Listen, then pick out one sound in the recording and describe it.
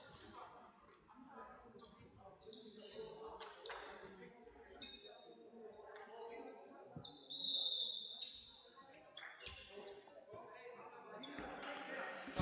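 A ball thuds as it bounces in an echoing hall.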